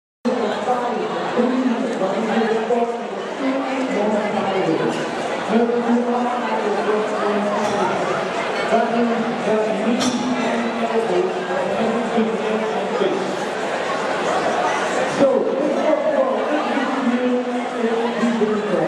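A man announces loudly through a microphone over loudspeakers in a large echoing hall.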